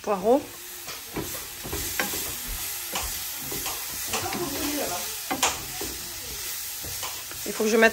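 A wooden spatula scrapes and stirs in a frying pan.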